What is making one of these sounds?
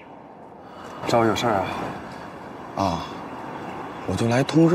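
A young man speaks earnestly nearby outdoors.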